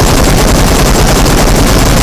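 Rapid gunshots ring out.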